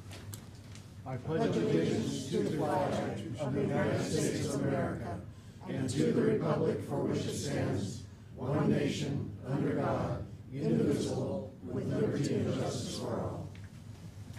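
A group of men and women recite together in unison in a large room.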